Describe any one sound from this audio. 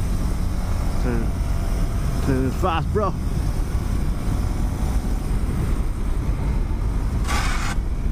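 A motorcycle engine hums steadily as the bike rides along a road.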